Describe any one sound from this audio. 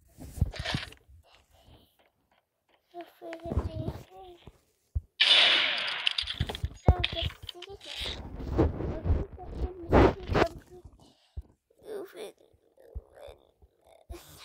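A young girl talks excitedly into a nearby microphone.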